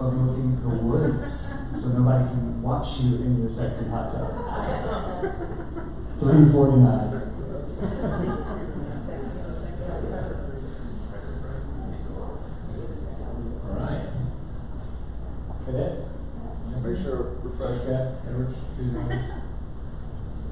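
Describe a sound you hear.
A man speaks calmly, with a slight room echo.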